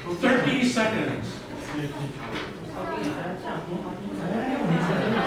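Several men and women chatter and talk over one another in a large echoing hall.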